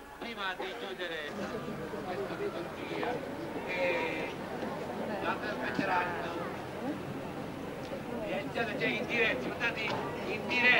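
A crowd of men and women talk and sing together close by.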